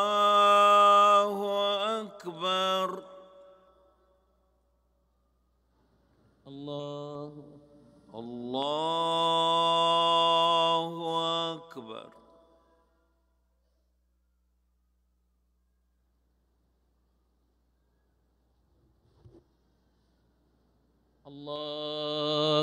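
A man chants slowly through loudspeakers, pausing between long drawn-out phrases.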